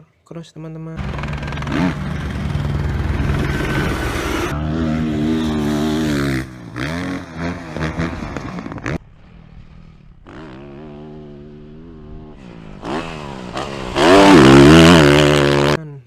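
A dirt bike engine roars and revs hard.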